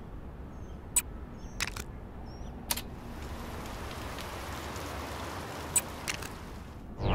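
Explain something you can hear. Short electronic clicks tick now and then.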